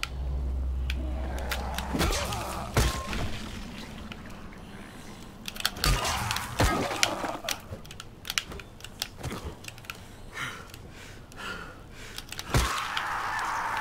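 A zombie groans and snarls.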